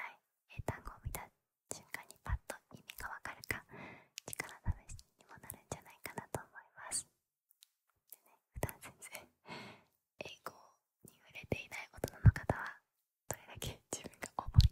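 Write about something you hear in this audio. Fingers tap and brush against a microphone.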